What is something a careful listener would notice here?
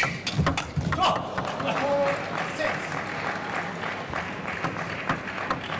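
A crowd in a large hall cheers and claps.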